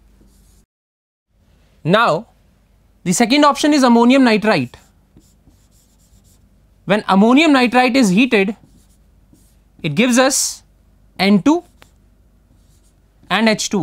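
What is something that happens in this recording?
A marker squeaks on a board.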